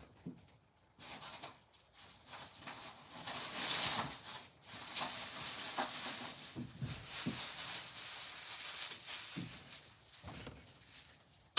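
Metal tools clatter and clank as a man rummages through a pile.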